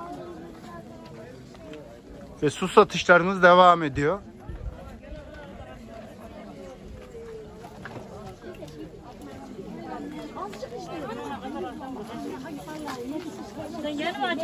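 A crowd of shoppers chatters all around outdoors.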